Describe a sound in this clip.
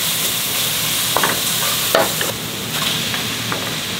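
Chopped vegetables drop into a pot with soft thuds.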